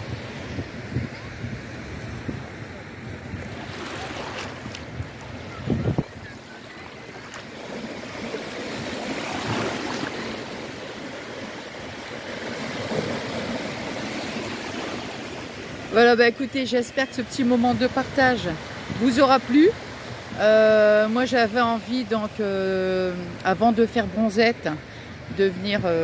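Small waves wash and break gently on a shore.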